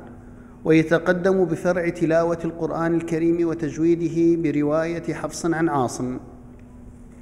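A man speaks formally into a microphone over loudspeakers in a large echoing hall.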